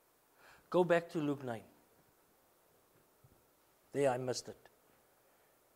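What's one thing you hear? A man speaks in short, pausing phrases into a microphone.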